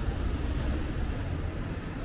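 A bicycle rolls past close by.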